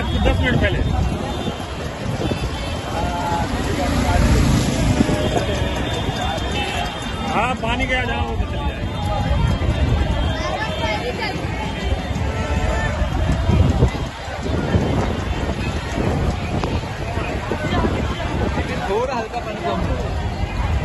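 Men talk loudly nearby.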